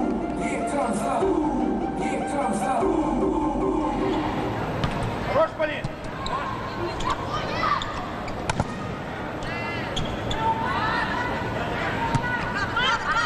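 A volleyball is struck hard by hand.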